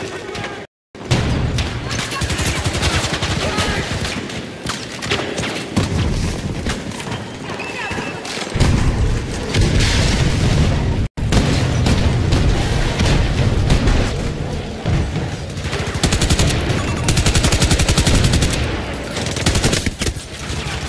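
Rapid gunfire rattles and booms loudly.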